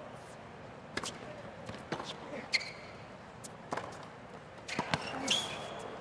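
Tennis rackets strike a ball in a quick rally.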